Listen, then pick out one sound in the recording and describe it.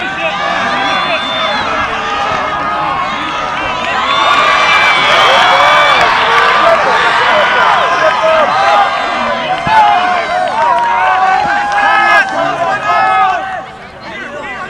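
A crowd of young men and spectators shout and cheer outdoors, some distance off.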